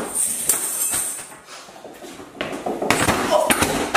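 A young man crashes into furniture with a thud.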